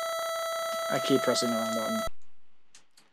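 Bright electronic game music plays in short beeping tones.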